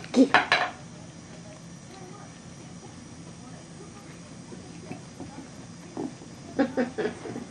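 A small puppy yips excitedly.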